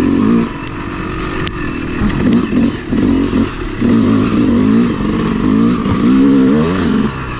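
A dirt bike engine revs up and down up close.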